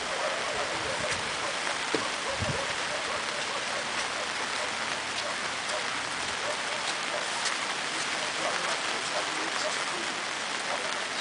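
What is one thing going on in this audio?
Men talk quietly at a distance outdoors.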